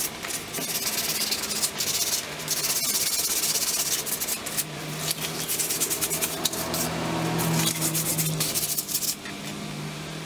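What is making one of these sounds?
A small metal tool scrapes and rubs rapidly across paper.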